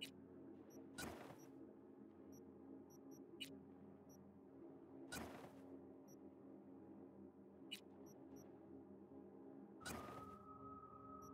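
Short whooshing swishes sound a few times.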